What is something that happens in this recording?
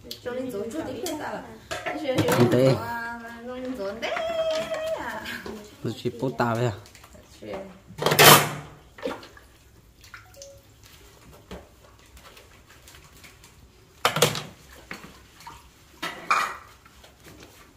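Dishes clink in a washing bowl.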